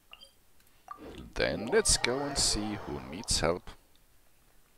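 A shimmering magical whoosh and chime sounds from a game.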